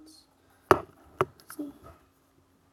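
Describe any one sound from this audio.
Headphones knock and rattle in a boy's hands.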